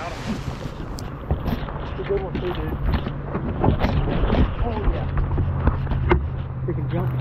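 Footsteps thump on a boat's carpeted deck.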